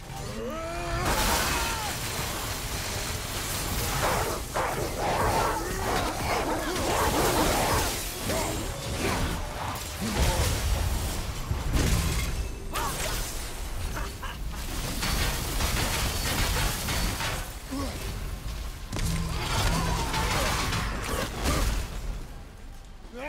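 Heavy blows, crashes and crackling lightning burst out throughout a fight.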